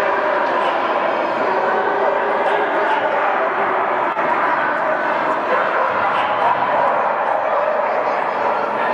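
A crowd murmurs steadily in a large echoing hall.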